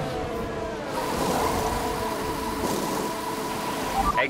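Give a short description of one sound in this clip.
Wheel guns whirr and clatter during a pit stop.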